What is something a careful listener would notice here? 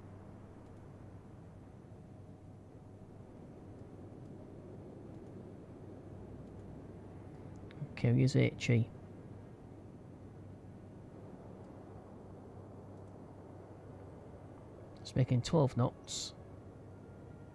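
A boat engine rumbles low and steady.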